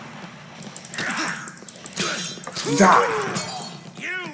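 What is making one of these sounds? Blows land with thuds and squelches in a video game.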